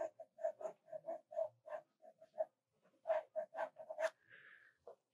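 A pencil scratches in quick strokes on paper.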